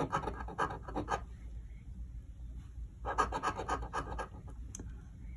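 A coin scratches rapidly across a card.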